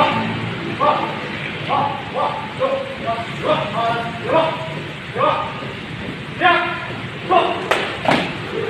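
A man shouts drill commands loudly.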